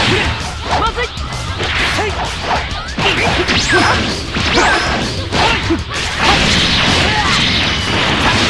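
Energy beams whoosh and roar.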